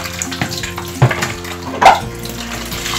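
A metal colander clanks against another bowl.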